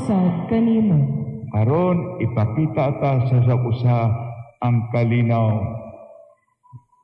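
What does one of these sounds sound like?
An elderly man chants through a microphone in an echoing hall.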